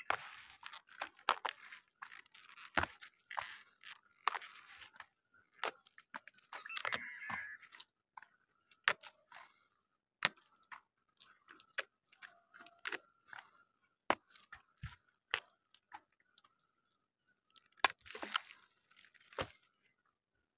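Leaves rustle and crinkle in a woman's hands.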